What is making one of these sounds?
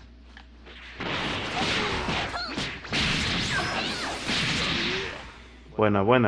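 Energy blasts whoosh and roar.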